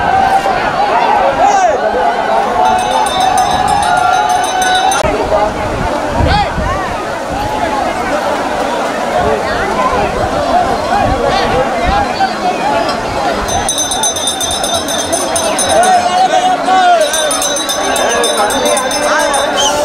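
A crowd of men and women chatter and call out all around, close by outdoors.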